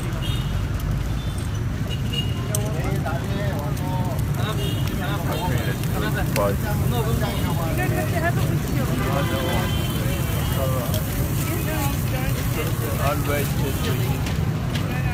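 A metal spatula scrapes and taps against a pan.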